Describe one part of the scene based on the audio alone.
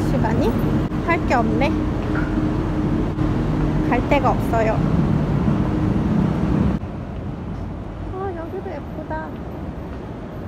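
A young woman talks casually close to a microphone.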